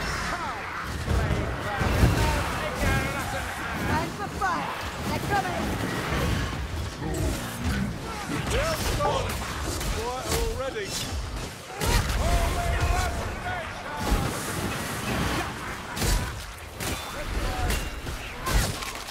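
Heavy blows thud and crack against creatures in a frantic melee.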